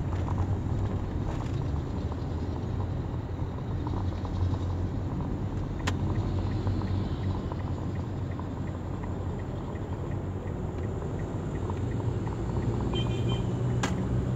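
Traffic rumbles nearby.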